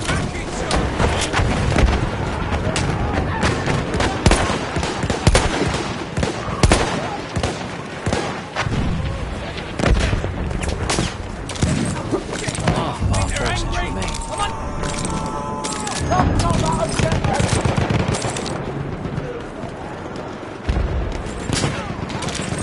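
Gunfire cracks repeatedly on a battlefield.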